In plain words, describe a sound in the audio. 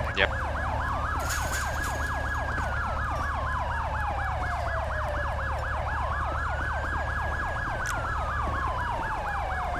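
A police siren wails and yelps nearby without a break.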